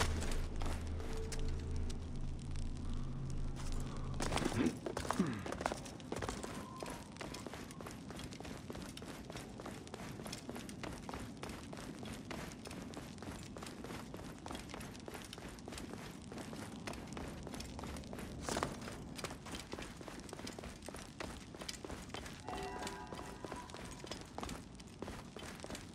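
Footsteps walk on a stone floor.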